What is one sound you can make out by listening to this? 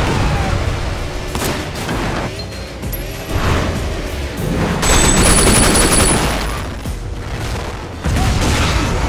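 A motorcycle engine roars.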